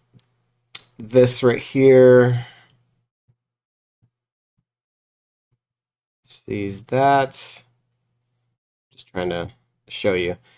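A man speaks calmly and thoughtfully close to a microphone, in short bursts with pauses.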